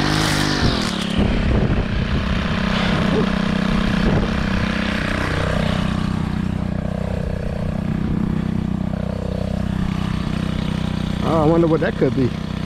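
A string trimmer motor hums steadily close by.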